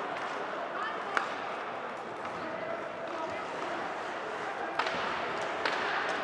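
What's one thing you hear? Ice skates scrape across the ice.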